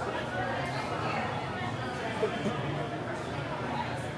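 A man sips a milkshake through a straw.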